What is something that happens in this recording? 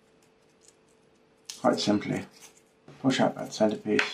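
A craft knife scrapes and trims thin wood.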